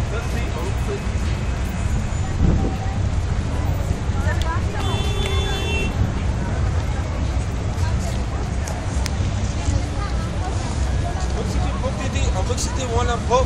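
Car engines idle and hum in busy street traffic outdoors.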